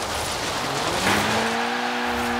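A car scrapes and crashes against a barrier.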